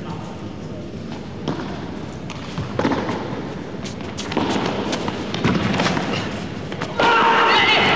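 Padel rackets strike a ball back and forth in a rally.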